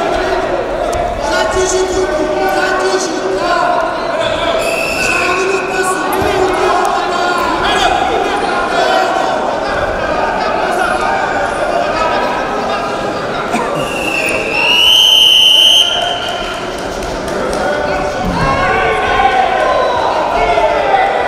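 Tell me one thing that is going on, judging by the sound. A crowd shouts and cheers in a large echoing hall.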